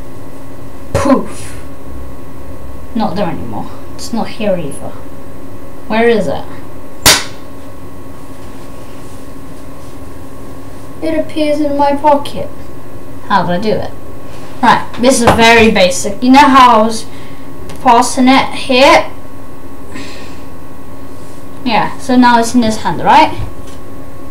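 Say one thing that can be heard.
A boy talks close to a microphone in short bursts, with pauses between.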